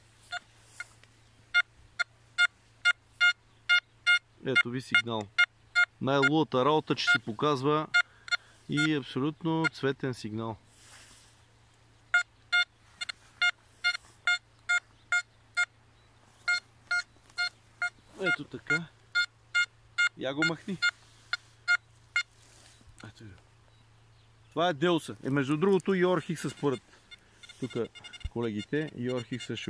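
A metal detector beeps in short, repeated high tones.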